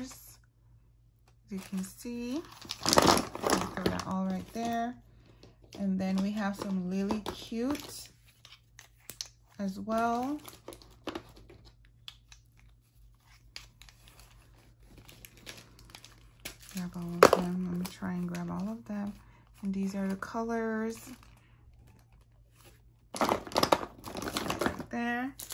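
Plastic bottles clink and rattle as they are handled.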